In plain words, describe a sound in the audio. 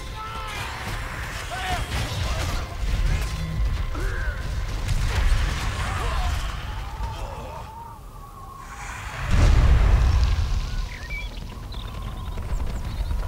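Swords clash in a battle.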